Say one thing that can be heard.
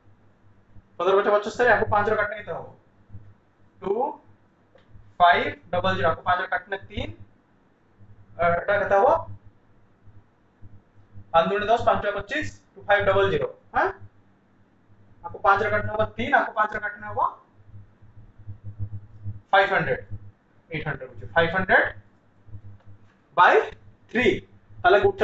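A young man speaks calmly and explains, close by.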